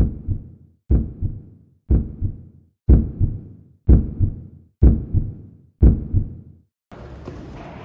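Knuckles knock on a door in a steady rhythm.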